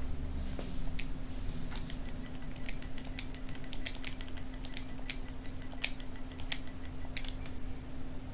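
Short electronic clicks tick as menu keys are selected.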